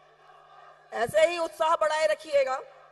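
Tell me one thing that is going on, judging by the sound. A woman speaks forcefully into a microphone over a loudspeaker.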